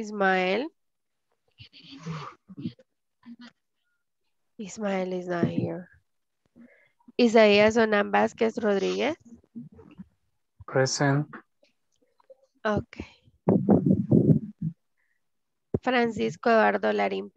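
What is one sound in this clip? A young woman speaks calmly through a microphone over an online call, pausing often.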